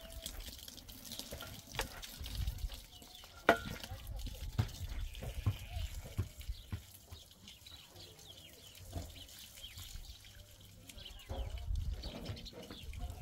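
Water splashes from a hose onto the ground.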